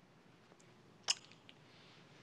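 A kiss smacks briefly.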